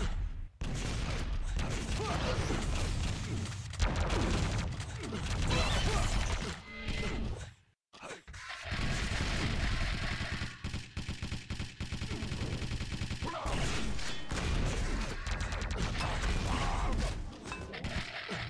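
Guns fire rapidly and rockets explode.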